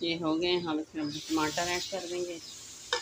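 Chopped tomatoes tumble into a pan.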